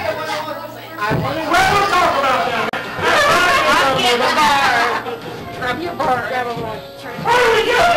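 Women talk and laugh close by, with animation.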